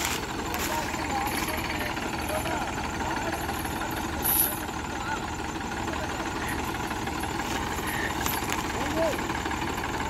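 Tractor engines rumble and chug steadily outdoors.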